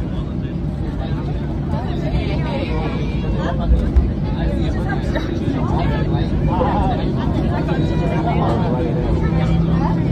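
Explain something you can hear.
A jet engine roars steadily as an airliner taxis.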